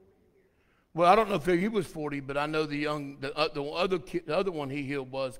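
A man speaks loudly through a microphone.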